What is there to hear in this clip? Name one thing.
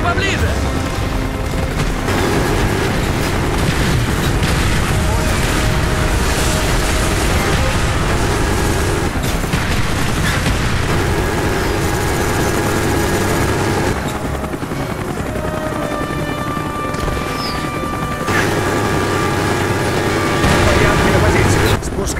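A helicopter's rotor thumps throughout.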